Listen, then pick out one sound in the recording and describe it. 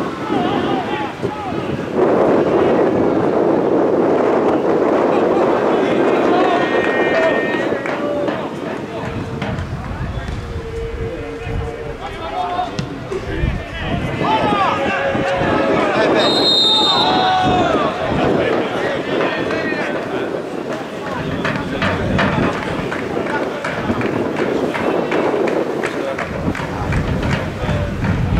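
A crowd cheers and chants from stands outdoors.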